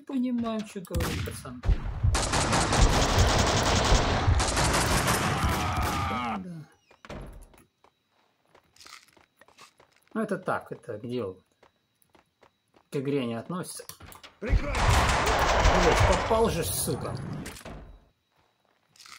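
Bursts of rapid gunfire ring out loudly.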